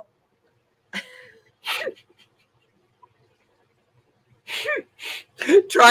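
A woman laughs loudly over an online call.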